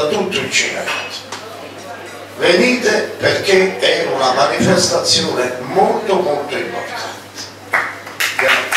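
An elderly man speaks steadily into a microphone.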